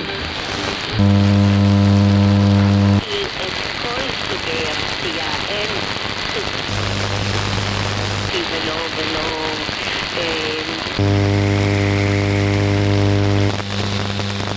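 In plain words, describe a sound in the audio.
A loud low buzz comes from a radio receiver in bursts.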